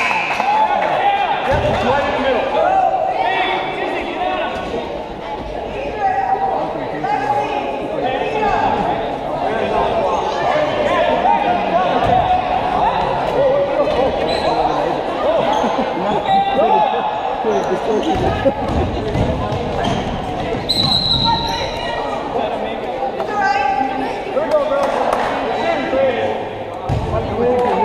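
A man shouts instructions loudly from the sideline.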